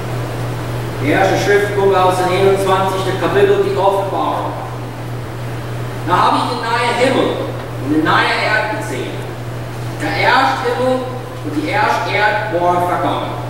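A man reads out calmly through a microphone in a large echoing hall.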